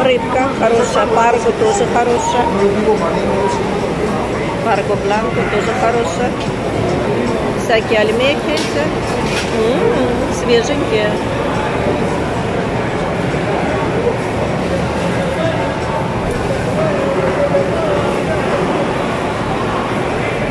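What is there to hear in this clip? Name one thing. Many people chatter in a busy, echoing indoor hall.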